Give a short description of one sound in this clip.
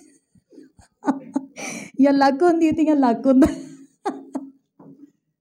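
A woman laughs loudly into a microphone.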